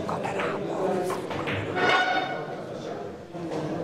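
Billiard balls knock together and roll across the table.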